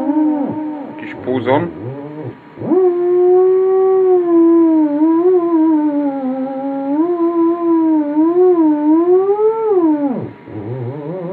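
An electronic instrument plays a wavering, gliding tone through a small loudspeaker.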